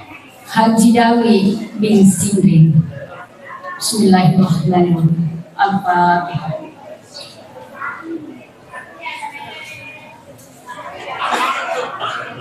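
A middle-aged woman speaks calmly into a microphone, heard through a loudspeaker.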